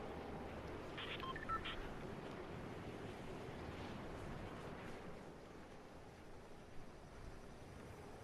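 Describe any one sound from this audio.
Wind rushes steadily past a figure gliding through the air.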